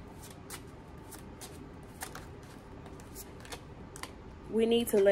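Playing cards riffle and snap as they are shuffled.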